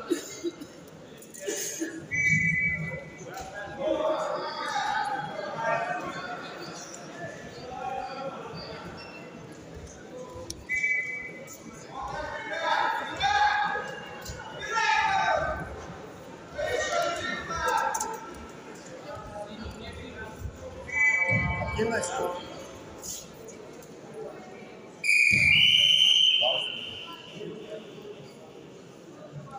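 Spectators shout encouragement in a large echoing hall.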